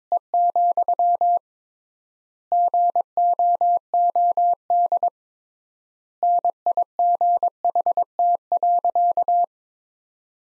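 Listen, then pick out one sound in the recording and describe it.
Morse code beeps sound in quick bursts of short and long tones.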